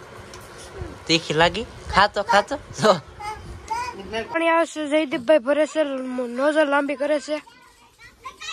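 A small child cries out loudly nearby.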